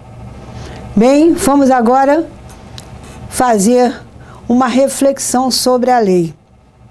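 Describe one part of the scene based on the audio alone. An elderly woman speaks calmly and clearly into a close microphone.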